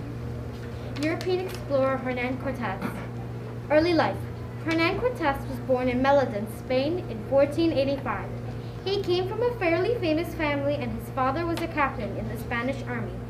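A young girl reads aloud from a paper, slightly muffled, close by.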